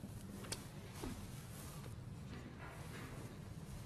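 A referee sets a snooker ball down on the table with a soft click.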